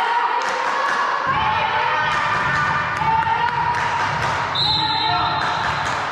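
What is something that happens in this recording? A volleyball is struck with a slap.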